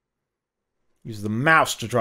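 A middle-aged man lectures into a headset microphone.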